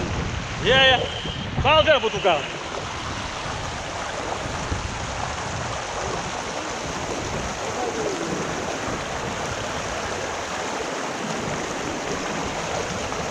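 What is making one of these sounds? Water splashes softly around a person wading.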